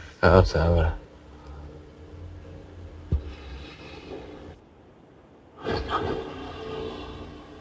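A man speaks with animation into a headset microphone, heard over an online call.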